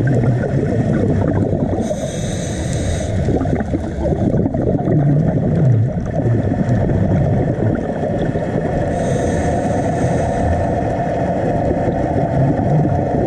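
A low, steady underwater rumble and rush of water fills the whole time.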